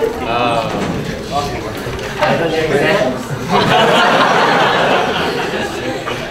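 A large audience chatters and cheers in an echoing hall.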